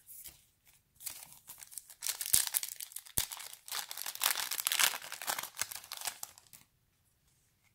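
A plastic wrapper crinkles loudly.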